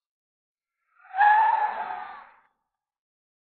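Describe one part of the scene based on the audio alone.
A young man calls out loudly.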